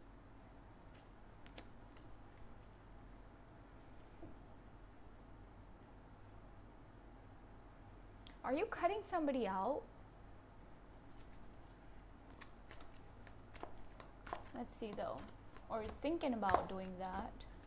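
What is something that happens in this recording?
Playing cards rustle and flick as they are shuffled by hand.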